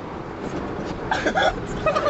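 A car engine hums as it drives along a road.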